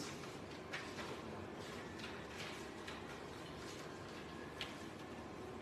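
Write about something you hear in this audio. Sheets of paper rustle and crinkle.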